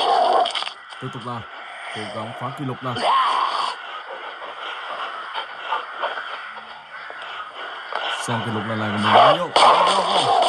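Zombies groan and moan nearby.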